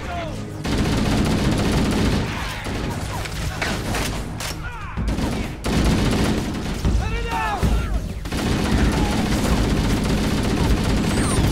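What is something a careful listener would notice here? Automatic gunfire rattles in a video game.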